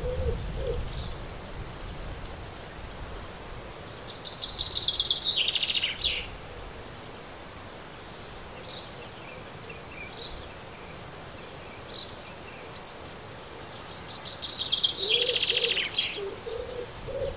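Small birds chirp and trill nearby.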